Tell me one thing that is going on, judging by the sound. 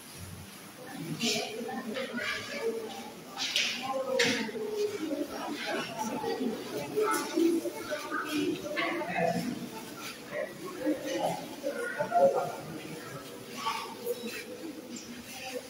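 Children chatter nearby.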